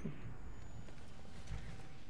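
A fire crackles nearby.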